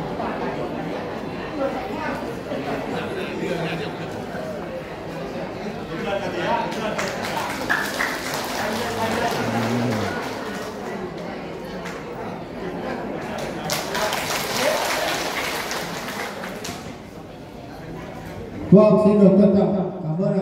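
A man and a woman talk in a room with a slight echo.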